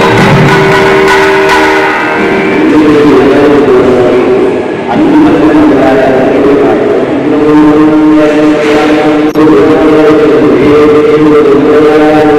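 A man chants a prayer in a steady, melodic voice.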